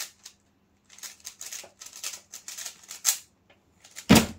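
A puzzle cube clicks and rattles as it is turned quickly.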